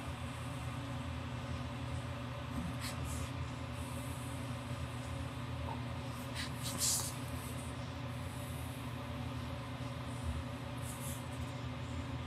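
A felt-tip pen scratches softly across paper in short strokes.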